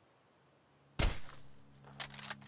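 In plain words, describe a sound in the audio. A rifle fires a single loud shot with a short echo.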